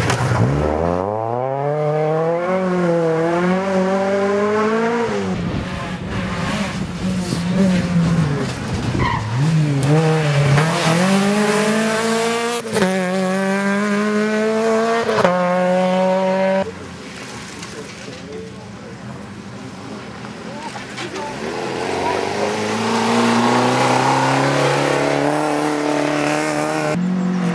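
Rally car engines rev hard and roar past, shifting gears.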